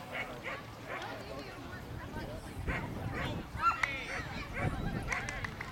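A woman calls out commands to a dog at a distance outdoors.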